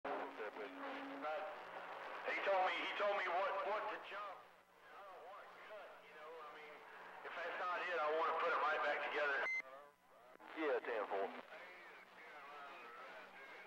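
A radio loudspeaker plays a crackly, changing transmission.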